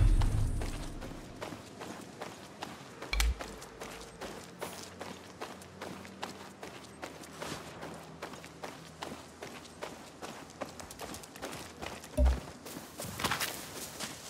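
Footsteps crunch steadily on gravel and grass.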